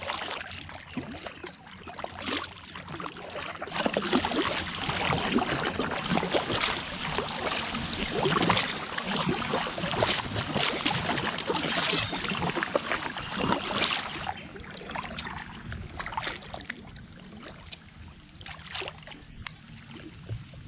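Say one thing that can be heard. A paddle splashes and dips into water.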